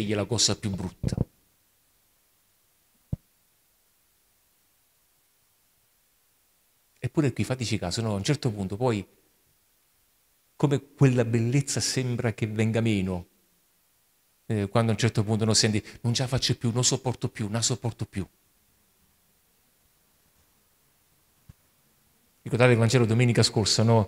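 A man speaks with animation through a microphone, in bursts with long pauses.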